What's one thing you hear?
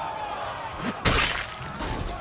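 A blade strikes with a sharp hit.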